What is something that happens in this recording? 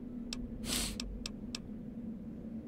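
Short menu clicks tick as a selection changes.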